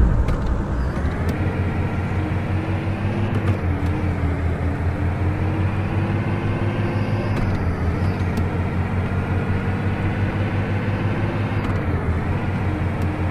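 A bus engine drones steadily, its pitch rising and dropping with gear changes.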